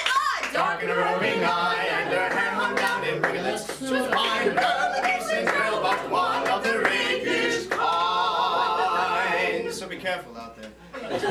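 A young woman sings a lively tune.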